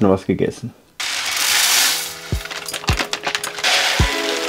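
Dry pasta pours from a bag into a metal pot.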